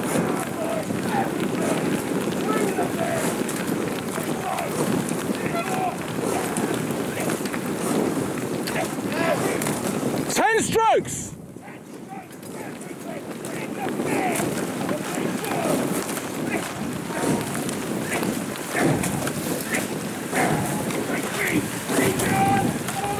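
A cox shouts calls to a rowing crew from the water.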